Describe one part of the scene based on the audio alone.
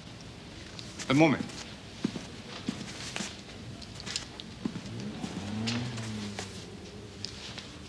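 An older man answers briefly.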